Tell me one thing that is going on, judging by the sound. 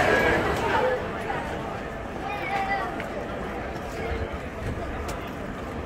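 A crowd murmurs quietly outdoors.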